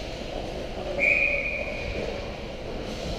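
A referee's whistle blows once, sharp and shrill, in a large echoing hall.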